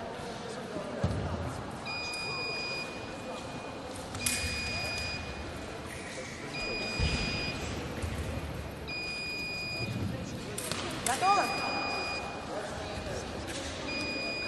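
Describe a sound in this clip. Fencers' footsteps thud on a piste in a large echoing hall.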